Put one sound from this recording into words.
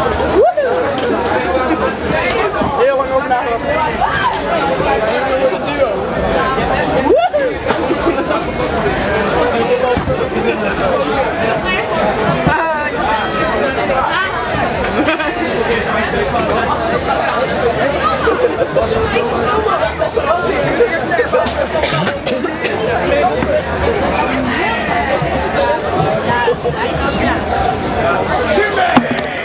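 Young men and women chatter loudly all around.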